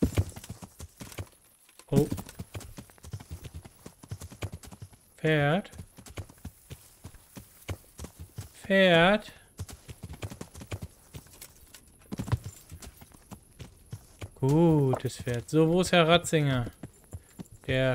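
Horse hooves clop on dirt at a walk.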